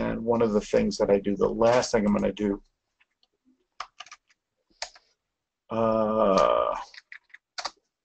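A middle-aged man speaks calmly through a microphone, as on an online call.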